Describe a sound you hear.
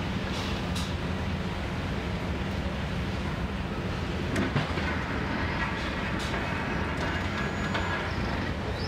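Demolition debris clatters and crashes now and then.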